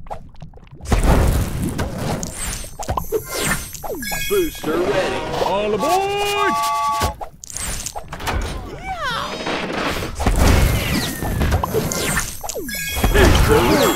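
Game jewels pop and chime as they match.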